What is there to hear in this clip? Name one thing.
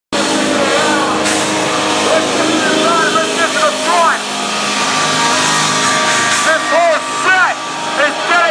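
A live band plays loud, distorted music in a room.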